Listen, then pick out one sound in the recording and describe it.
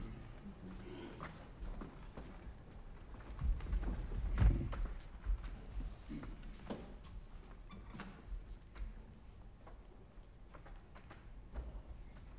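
Footsteps knock and shuffle on a wooden stage floor.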